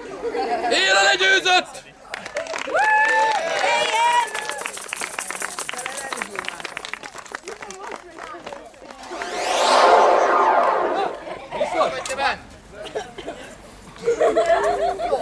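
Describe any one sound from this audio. Men shout and yell excitedly nearby outdoors.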